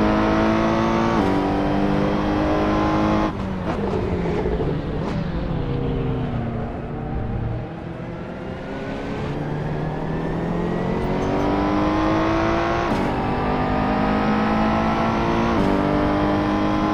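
A racing car engine roars at high revs, dropping in pitch with each gear change and braking, then rising again.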